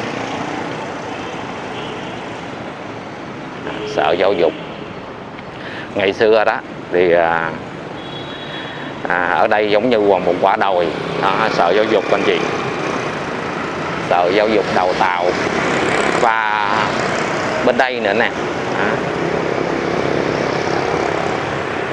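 Motorbikes ride past close by.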